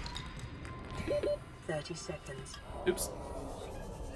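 Game beeps and chimes sound in short bursts.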